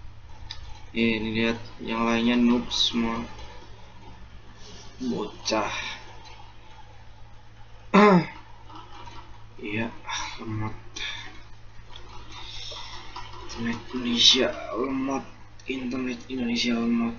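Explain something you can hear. A young man talks casually and close to a microphone, in bursts with pauses.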